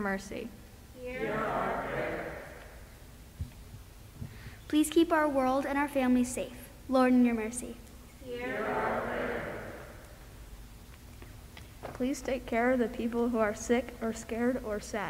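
Young girls sing together into a microphone in a large echoing hall.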